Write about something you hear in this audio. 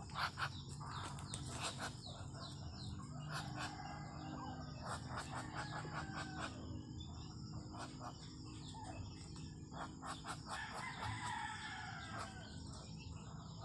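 Ducks' feet rustle through dry leaves on the ground.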